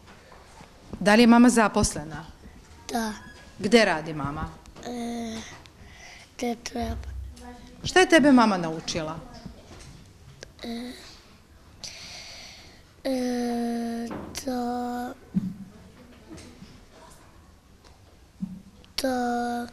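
A young boy speaks quietly and hesitantly, close to a microphone.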